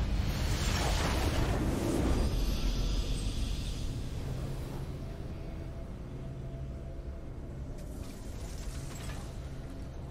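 A video game victory fanfare plays.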